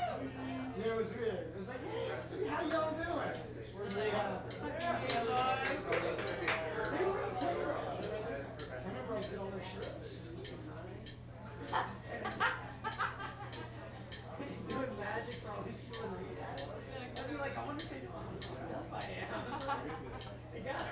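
A band plays live music through loudspeakers.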